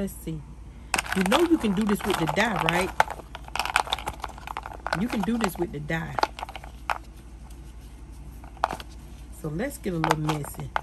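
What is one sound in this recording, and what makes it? Wooden sticks clatter and rustle in a wet plastic bowl.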